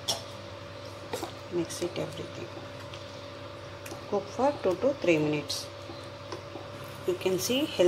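A metal spoon clinks and scrapes against a pot while stirring.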